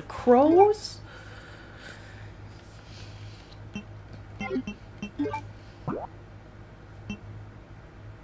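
Short electronic beeps sound as menu items are selected.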